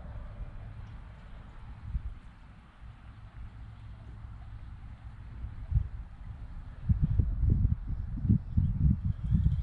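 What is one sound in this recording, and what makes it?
Wind rumbles and buffets outdoors, growing stronger in gusts near the end.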